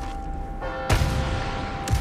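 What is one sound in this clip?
A rocket launcher fires with a loud, sharp boom.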